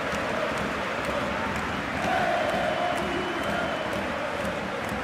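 A football is tapped along in quick, light touches.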